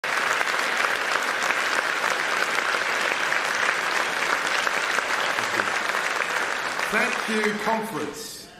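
An audience applauds loudly in a large hall and then quiets down.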